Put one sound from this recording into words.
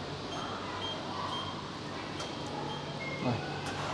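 An electronic card reader beeps.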